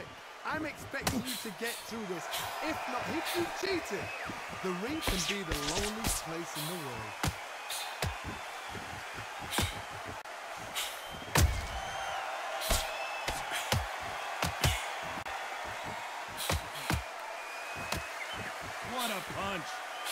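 Padded gloves thump against a body in quick punches.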